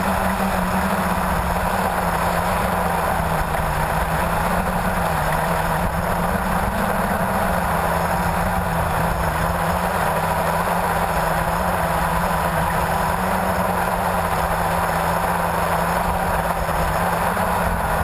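Drone motors hum and whine steadily close by.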